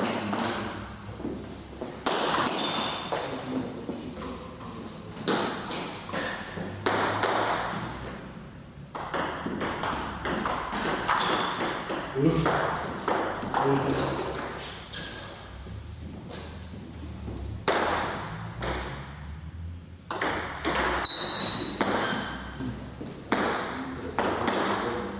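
A ping-pong ball clicks sharply back and forth off paddles and a table, with a slight echo.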